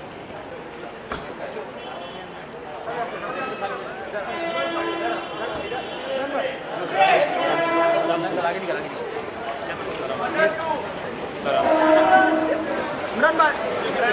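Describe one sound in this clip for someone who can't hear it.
A crowd of men shout and call out outdoors.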